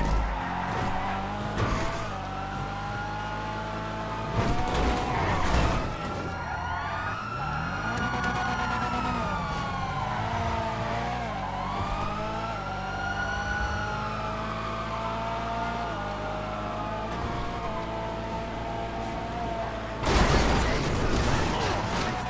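A car engine roars and revs as the car speeds along.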